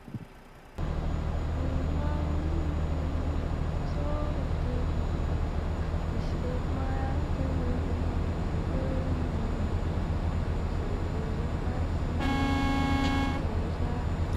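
A truck engine drones steadily at a low pitch.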